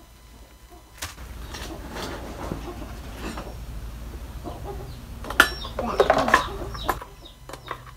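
Metal tools clink and scrape against a chainsaw.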